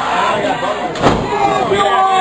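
A heavy thud sounds as a wrestler hits the ring mat.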